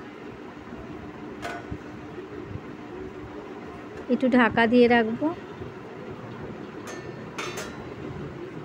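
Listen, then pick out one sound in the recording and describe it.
A metal pan clanks onto a stove.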